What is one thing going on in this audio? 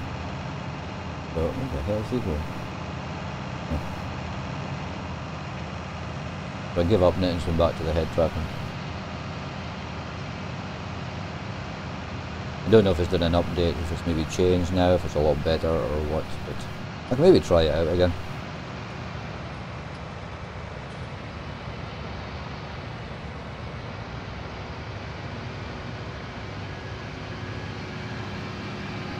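A tractor engine hums steadily inside the cab.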